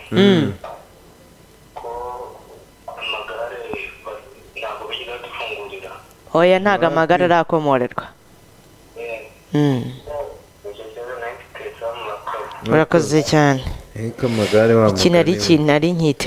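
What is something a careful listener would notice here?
A woman speaks calmly into a microphone, close by.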